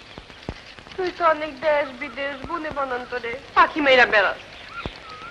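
A young woman sings a high, wavering melody.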